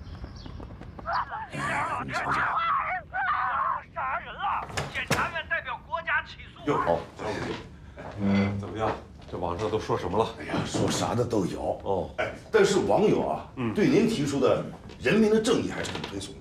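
A middle-aged man speaks loudly and forcefully nearby.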